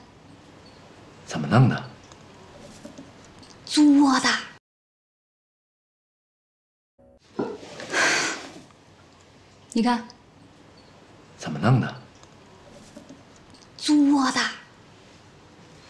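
A man speaks quietly and with puzzlement, close by.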